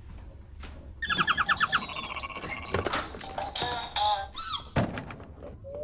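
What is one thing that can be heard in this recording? A toy plays a tinny electronic tune.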